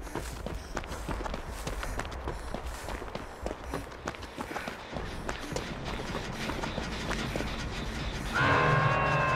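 Footsteps run quickly over snowy grass.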